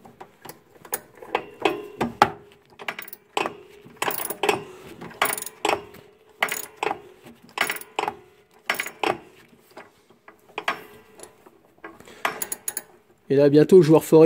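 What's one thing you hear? A metal wrench clicks and taps against a bolt.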